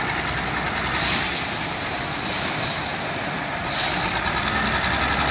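Gravel pours and rattles from a loader bucket into a truck bed.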